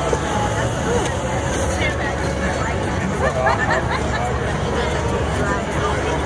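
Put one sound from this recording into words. A crowd of men and women chatter and call out nearby outdoors.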